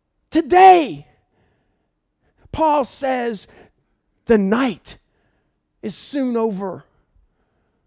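A man speaks with animation into a microphone, in short bursts.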